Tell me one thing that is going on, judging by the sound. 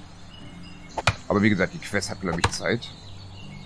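An axe chops into a tree trunk with sharp knocks.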